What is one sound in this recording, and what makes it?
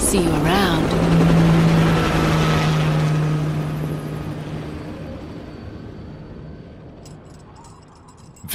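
A helicopter's engine and rotor drone and fade away into the distance.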